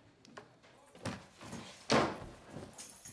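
A door bumps and bangs shut.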